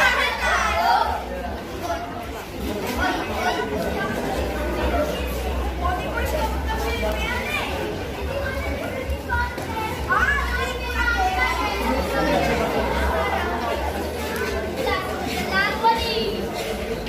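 A large crowd of children chatters and shouts nearby, outdoors.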